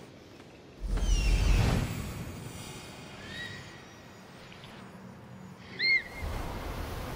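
An eagle screeches several times.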